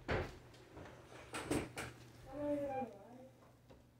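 A door creaks as it swings open.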